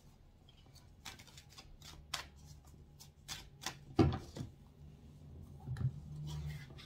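A hand fumbles with a small object, making soft taps and rustles close by.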